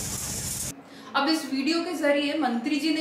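A young woman reads out news clearly through a microphone.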